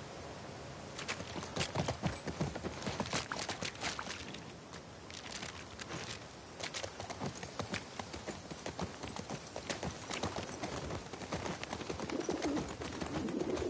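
Horse hooves clop steadily on pavement.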